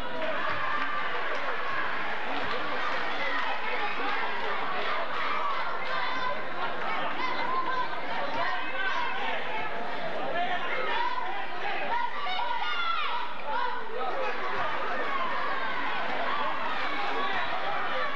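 A large crowd chatters and cheers in an echoing gym.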